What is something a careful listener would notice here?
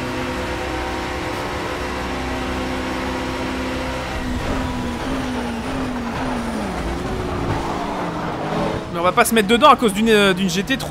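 A racing car engine drones loudly at high revs.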